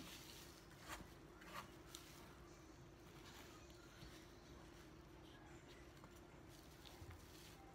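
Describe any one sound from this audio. A knife taps on a wooden cutting board.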